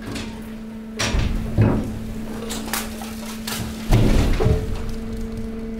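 Metal clanks loudly a few times.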